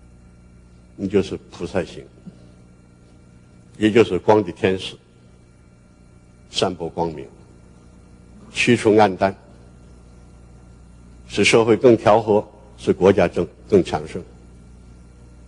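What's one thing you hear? An elderly man speaks slowly and solemnly in short phrases through a microphone in a large hall.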